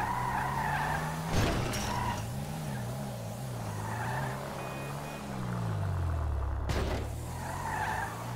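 A car engine hums at low speed, its pitch rising and falling.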